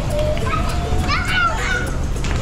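A young girl squeals with excitement.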